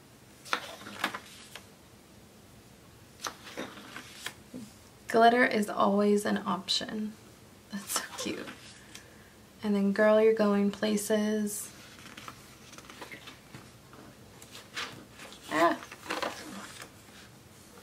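Paper pages rustle and flip as a planner's pages are turned.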